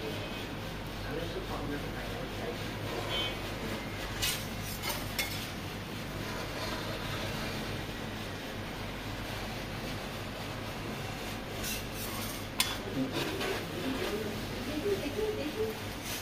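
A metal scraper scrapes and rolls a sheet of ice cream across a cold steel plate.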